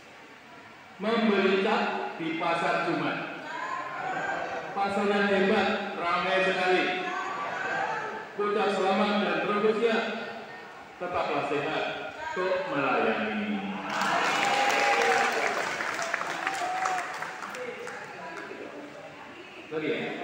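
An elderly man speaks calmly into a microphone, heard through a loudspeaker in a large echoing hall.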